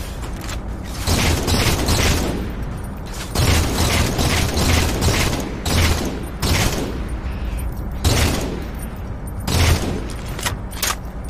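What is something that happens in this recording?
Rifle shots ring out in short bursts.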